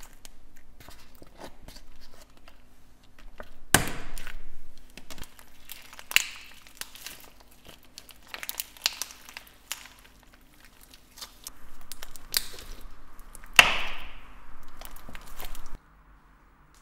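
Bubble wrap and paper crinkle and rustle in hands.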